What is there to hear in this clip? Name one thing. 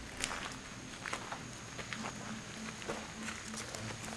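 Footsteps crunch on a dirt path outdoors.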